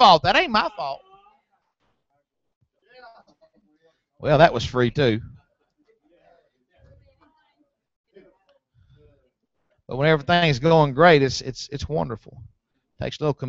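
A man preaches through a microphone in short bursts, with pauses between phrases.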